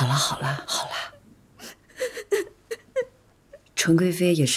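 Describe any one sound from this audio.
A woman speaks firmly and urgently nearby.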